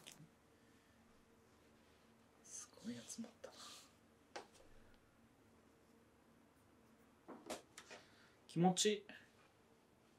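Soft tufts of cotton are patted down on a wooden table.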